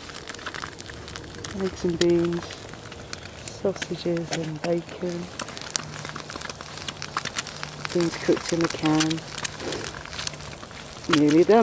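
A wood fire crackles and pops.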